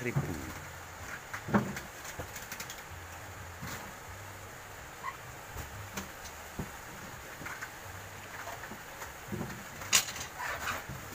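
Heavy sacks thump down onto a pile.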